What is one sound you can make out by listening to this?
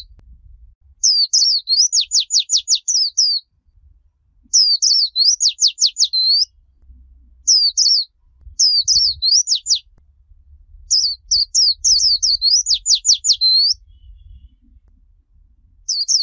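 A small songbird sings nearby in quick bursts of high, bright chirps and trills.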